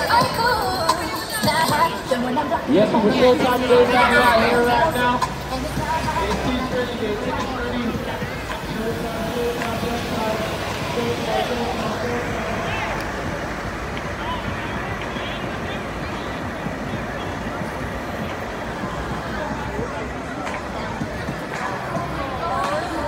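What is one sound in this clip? City traffic rumbles past steadily.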